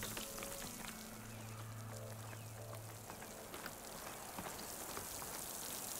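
Footsteps crunch on snowy ground.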